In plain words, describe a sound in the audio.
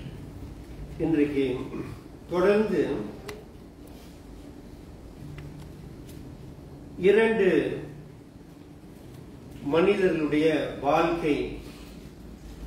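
An older man preaches with emphasis through a microphone, in bursts with pauses.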